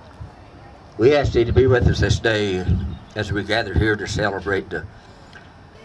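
An older man speaks steadily into a microphone, heard through a loudspeaker outdoors.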